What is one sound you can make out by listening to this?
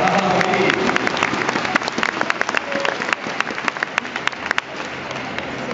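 A large crowd claps and cheers in a big echoing hall.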